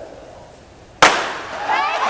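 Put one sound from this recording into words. A starting pistol fires once with a sharp crack.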